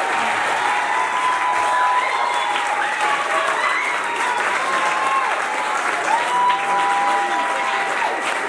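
A large audience chatters and murmurs indoors.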